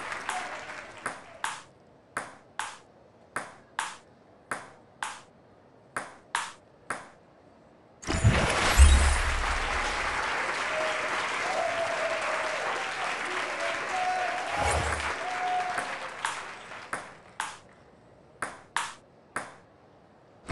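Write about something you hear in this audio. A ping-pong ball clicks back and forth on a table and paddles.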